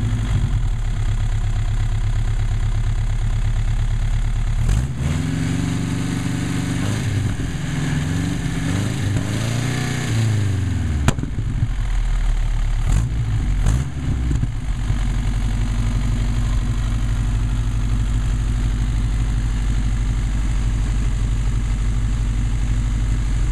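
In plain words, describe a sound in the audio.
An engine idles loudly and steadily outdoors.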